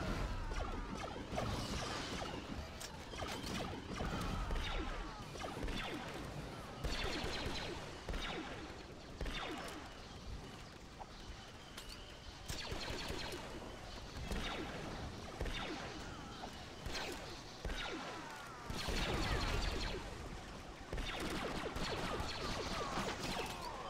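Blaster rifles fire in rapid bursts of laser shots.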